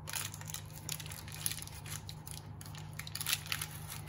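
Hands tear apart soft baked buns.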